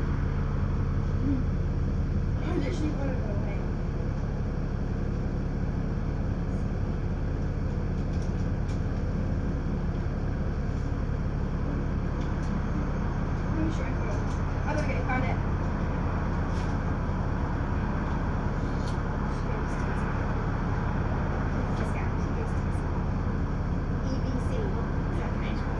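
Cars drive past on the street.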